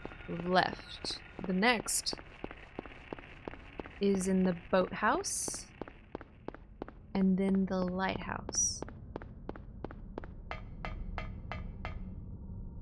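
Footsteps run quickly and steadily on hard ground.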